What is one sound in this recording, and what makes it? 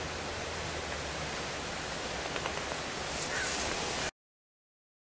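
A man gets up from a creaking chair.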